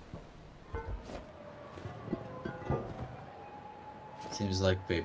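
A heavy metal lid scrapes and clanks.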